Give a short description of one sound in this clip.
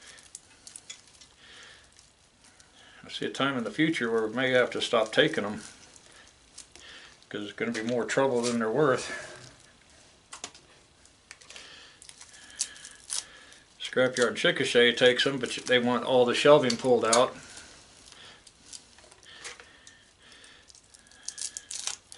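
Wire crinkles and clicks in a man's hands.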